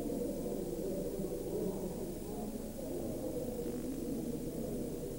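A crowd of men and women murmur and talk quietly in a large echoing hall.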